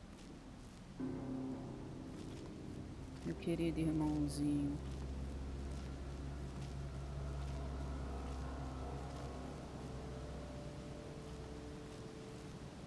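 Low game music hums and swells, then fades.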